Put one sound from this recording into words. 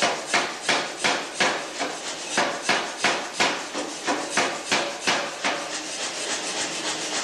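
A power hammer pounds hot metal with fast, regular blows.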